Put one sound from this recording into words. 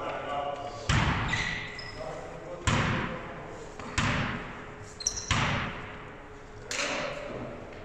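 A basketball bounces on a wooden floor with an echo.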